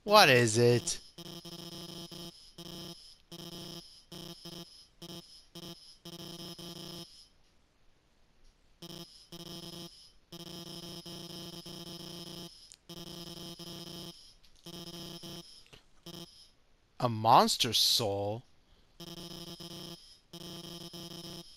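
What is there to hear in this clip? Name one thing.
A character's speech comes as a quick run of buzzing, beeping text blips.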